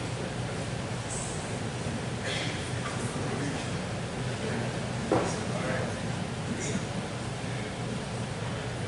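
A crowd of men and women murmur and chatter nearby in a large room.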